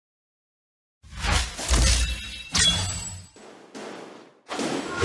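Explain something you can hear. Game combat sound effects clash and whoosh.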